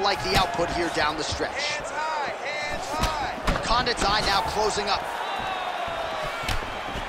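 Punches land with sharp thuds.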